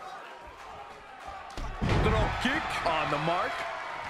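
A body slams onto a wrestling ring mat.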